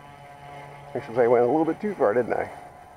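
A tricopter's electric motors and propellers whine, revving up and down in pitch.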